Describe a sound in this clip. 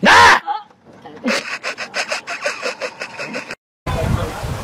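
An elderly woman shouts outdoors.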